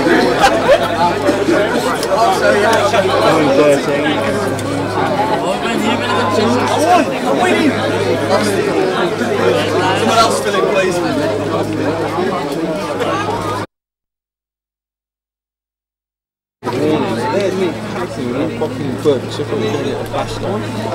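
A crowd of men and women chatter and call out outdoors.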